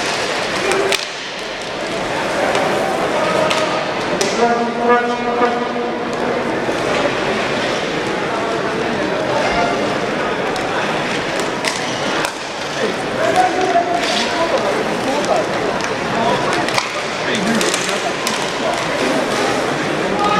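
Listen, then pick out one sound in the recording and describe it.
Skates scrape and hiss on the ice.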